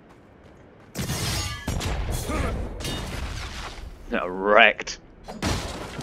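Blades clash and slash in a loud, hectic fight.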